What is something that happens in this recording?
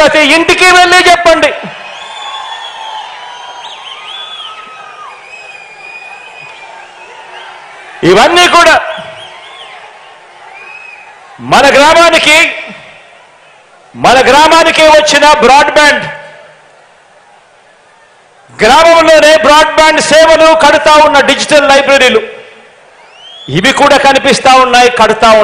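A man speaks forcefully into a microphone over loudspeakers, in loud bursts with pauses.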